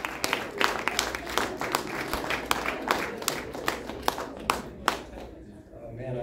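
An audience claps and cheers in a room.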